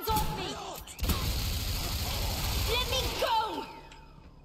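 An automatic gun fires a rapid burst.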